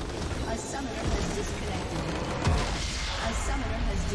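A structure crumbles and explodes with a loud crash.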